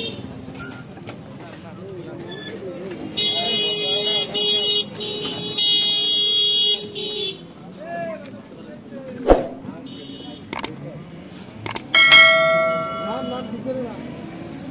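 Men talk and call out to each other nearby, outdoors.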